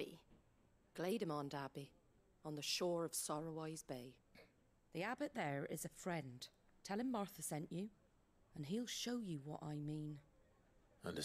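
A woman speaks calmly and warmly.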